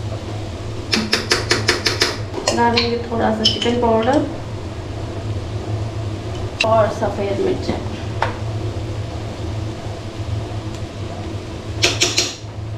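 A spice jar rattles as it is shaken.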